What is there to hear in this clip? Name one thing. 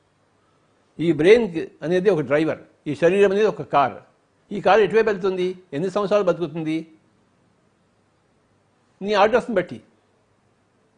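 An elderly man speaks calmly and closely into a microphone, pausing between phrases.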